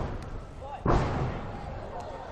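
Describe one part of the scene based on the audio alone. Feet land with a heavy thud on a sprung floor.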